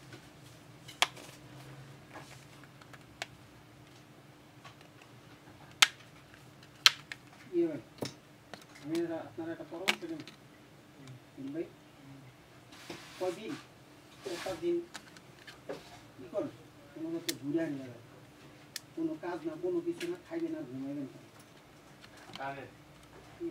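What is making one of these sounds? Small plastic parts click and tap as a phone is handled.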